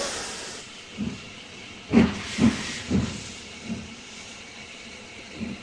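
A steam locomotive chuffs in heavy puffs.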